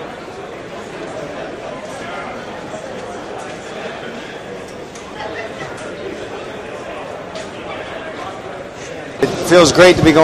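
A crowd murmurs and chatters in a busy hall.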